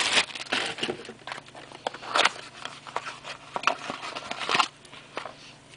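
Plastic packaging crinkles and rustles as hands unwrap it.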